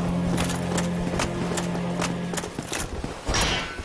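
Armored footsteps clank rapidly on stone.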